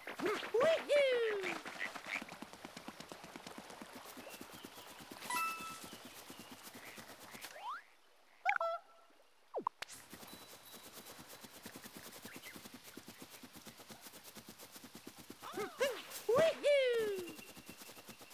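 A cartoon character makes short chirpy cries.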